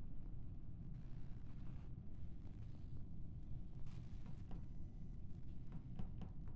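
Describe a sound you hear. Light footsteps patter quickly across a hard floor.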